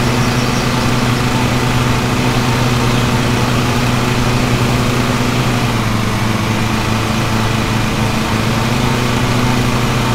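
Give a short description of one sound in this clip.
A riding lawn mower engine drones steadily.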